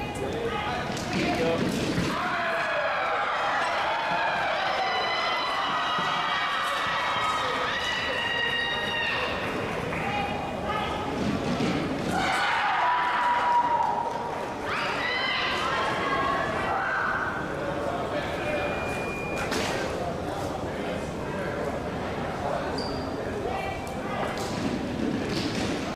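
Women and men chatter nearby in a large echoing hall.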